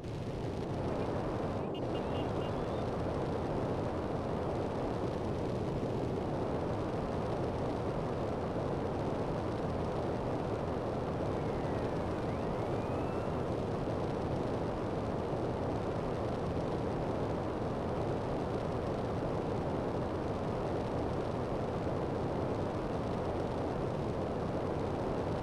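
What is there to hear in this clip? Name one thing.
A jetpack's thrusters roar.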